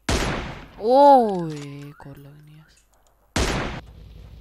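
A rifle fires a single loud, echoing shot.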